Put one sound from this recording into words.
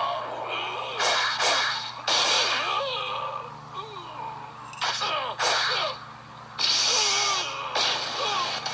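Punches land with heavy, blasting thuds.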